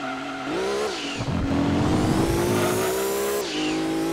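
Tyres screech around a bend.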